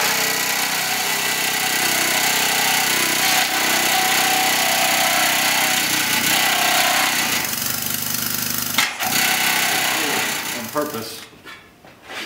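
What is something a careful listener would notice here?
A power tool whirs loudly against metal.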